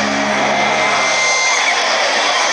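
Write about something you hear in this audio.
A rock band plays loudly through big loudspeakers.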